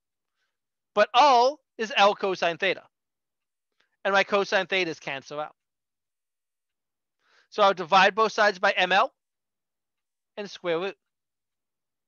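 A man explains calmly into a microphone, with short pauses.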